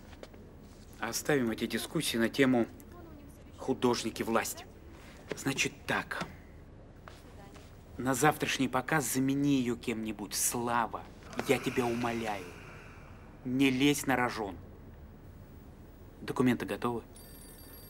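A middle-aged man speaks firmly and urgently nearby.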